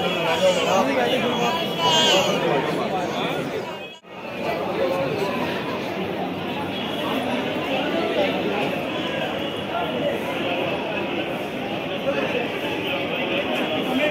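A crowd of men and women chatter and call out close by.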